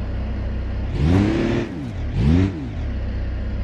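Car tyres clunk and rattle up a metal ramp.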